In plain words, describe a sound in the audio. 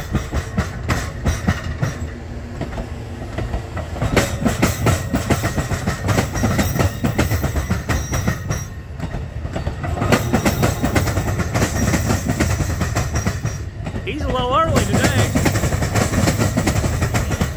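A passenger train rolls past close by, wheels clattering and rumbling over the rails.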